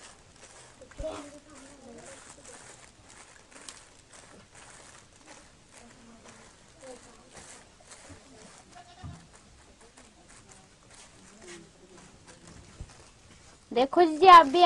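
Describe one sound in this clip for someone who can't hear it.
Small grains rattle and patter softly on crinkling plastic.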